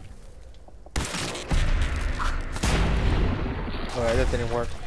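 A heavy gun fires in a rapid burst.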